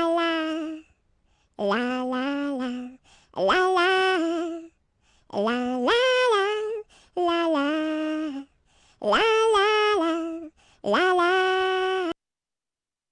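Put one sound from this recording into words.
A cartoon character sings a cheerful tune in a high, bright voice.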